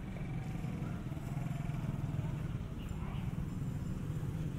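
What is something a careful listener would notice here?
A motorbike passes close by with its engine running.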